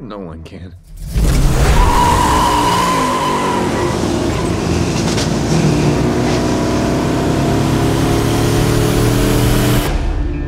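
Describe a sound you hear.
A car engine roars and revs up as the car speeds away.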